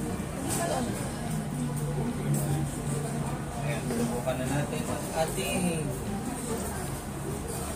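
Cutlery clinks against plates now and then.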